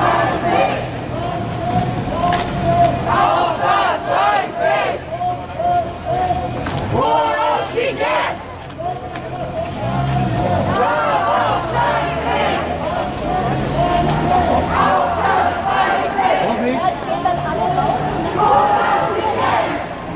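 A crowd of marchers chatters outdoors.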